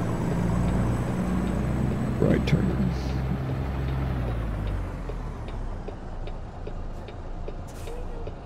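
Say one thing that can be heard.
A truck engine rumbles steadily, then grows quieter.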